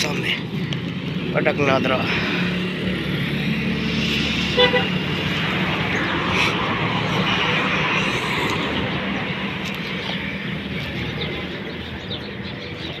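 Traffic rumbles steadily along a nearby road.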